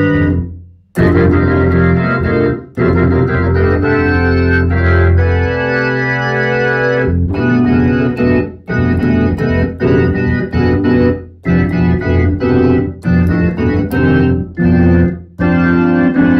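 An electric organ plays chords in short bursts, with brief pauses between them.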